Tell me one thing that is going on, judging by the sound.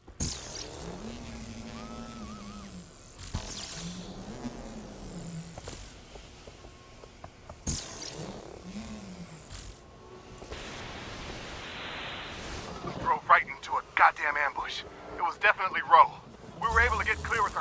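An electric energy burst whooshes and crackles in short rushes.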